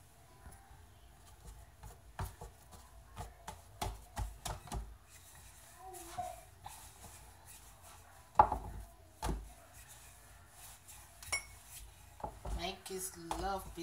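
A rolling pin rolls and thumps on a wooden board.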